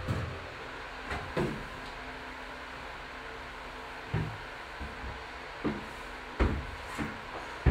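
A climber's hands and feet thump and knock against holds on a climbing wall.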